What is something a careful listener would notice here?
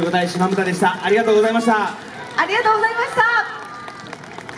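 A group of young women shout together in unison.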